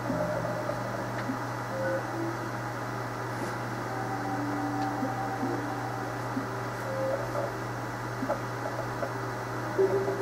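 Short electronic menu tones beep now and then.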